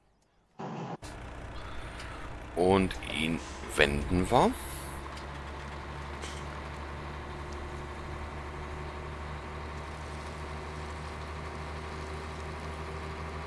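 A diesel truck engine drives with a low, steady hum.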